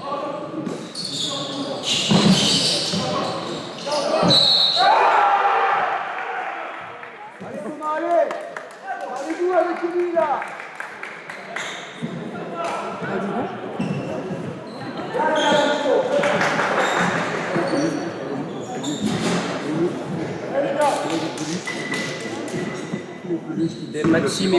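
Young men shout and call out in an echoing gym.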